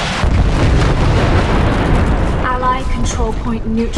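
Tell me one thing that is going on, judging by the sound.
Electric crackling bursts from a game fight ring out.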